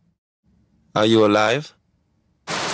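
A man speaks in a low, calm voice close to the microphone.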